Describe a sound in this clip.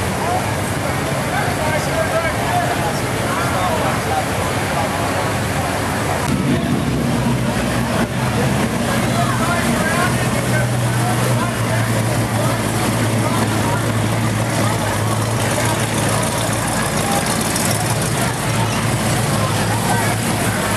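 Old car engines rumble as cars roll slowly past.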